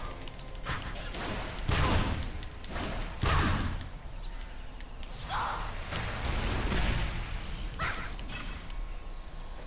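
Magic blasts and sword strikes crash and boom in quick bursts.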